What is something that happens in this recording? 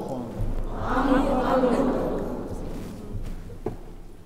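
A man chants in a reverberant hall.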